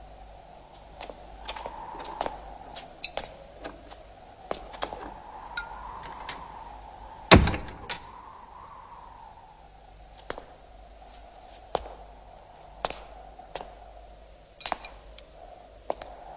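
Footsteps scuff slowly on a hard floor.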